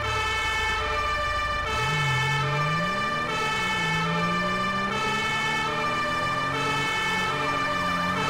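A police siren wails in a steady two-tone pattern.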